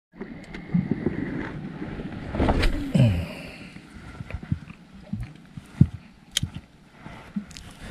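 A fishing reel whirs and clicks as it is wound by hand.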